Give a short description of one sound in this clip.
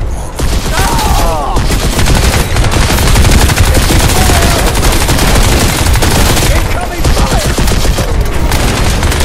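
Rapid rifle gunfire rattles in bursts.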